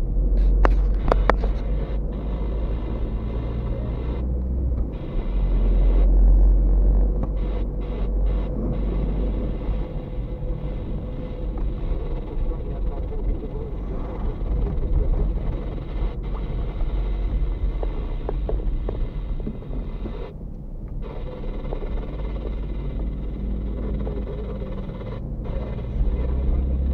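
A car drives along an asphalt street, with low road rumble heard from inside the car.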